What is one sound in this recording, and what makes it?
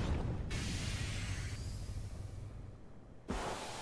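Energy beams zap and hum.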